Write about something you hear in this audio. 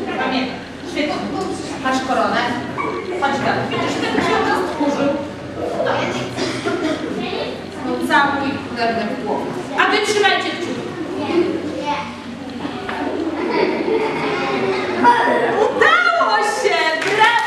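Children speak and call out in a large echoing hall.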